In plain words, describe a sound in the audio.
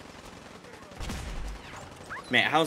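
An explosion booms with a deep rumble.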